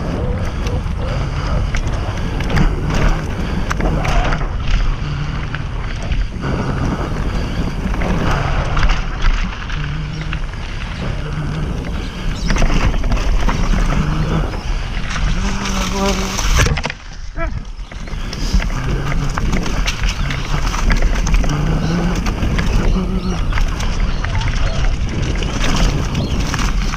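Mountain bike tyres roll and rattle over a dirt trail.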